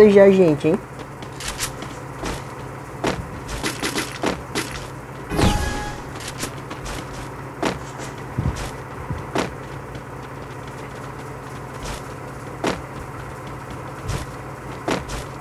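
Footsteps patter quickly across the ground.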